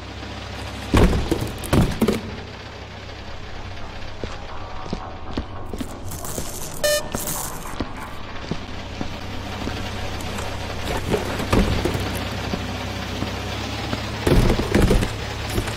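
Cardboard boxes thump down onto a hard floor.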